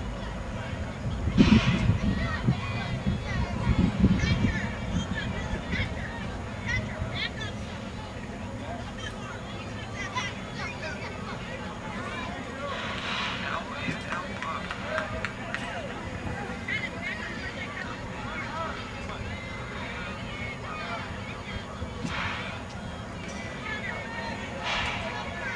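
Children call and chatter at a distance.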